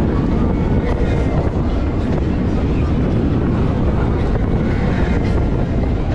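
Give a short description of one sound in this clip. Wind roars and buffets loudly outdoors.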